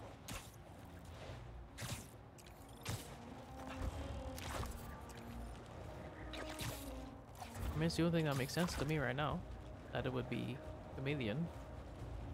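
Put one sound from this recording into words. Rushing air whooshes in repeated swoops.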